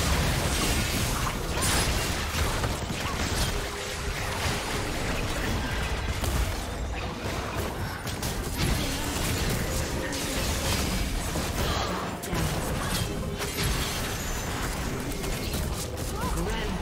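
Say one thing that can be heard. Magic blasts and clashing weapons burst and crackle in a fast fight.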